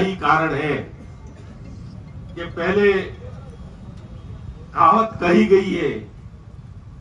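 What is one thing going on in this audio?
A man speaks in short bursts through a loudspeaker, outdoors.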